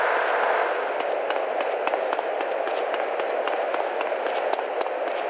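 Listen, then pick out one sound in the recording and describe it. Quick footsteps slap on pavement as someone runs.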